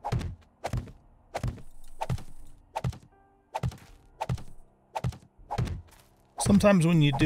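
A tool strikes earth and rock in steady repeated thuds.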